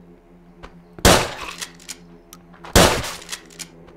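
A shotgun fires loudly twice indoors.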